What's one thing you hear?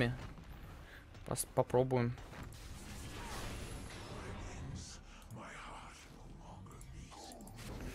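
Game spells and effects crackle and whoosh.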